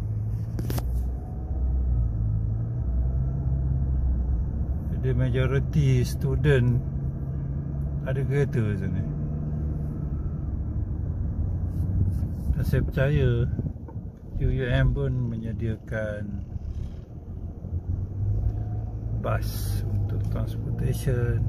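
A car engine hums steadily from inside the car while driving.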